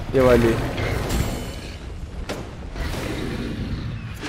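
A magical blast roars and crackles.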